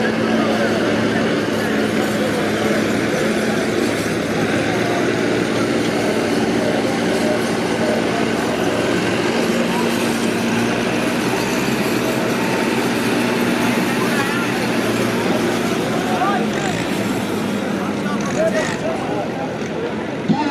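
A large outdoor crowd murmurs and chatters in the distance.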